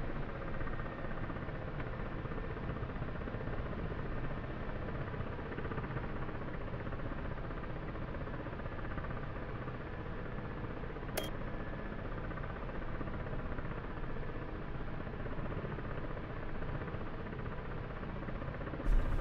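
A coaxial-rotor helicopter's engines and rotor drone steadily, heard from inside the cockpit.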